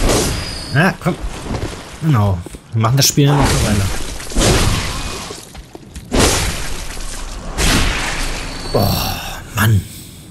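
Heavy weapon blows strike flesh with wet thuds.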